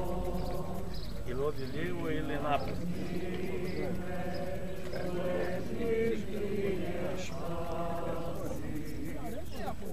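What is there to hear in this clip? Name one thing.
A group of men and women sings a hymn outdoors.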